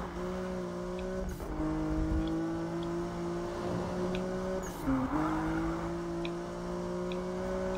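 A car engine roars at high revs, dipping briefly as gears shift.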